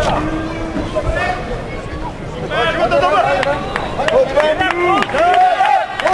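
A crowd of men and women shouts encouragement in a large echoing hall.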